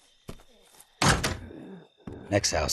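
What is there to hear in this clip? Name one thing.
A door bursts open with a loud bang.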